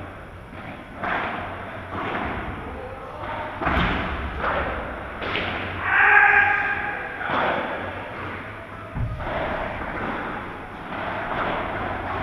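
Padel rackets hit a ball back and forth in a large echoing hall.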